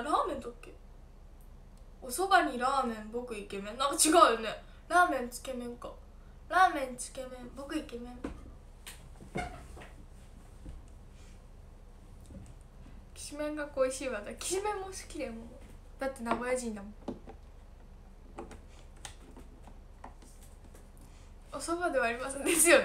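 A young woman talks calmly and closely into a microphone, in short bursts with pauses.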